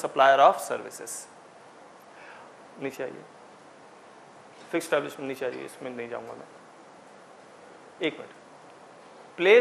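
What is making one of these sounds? A man speaks calmly in a room, explaining in short phrases with pauses.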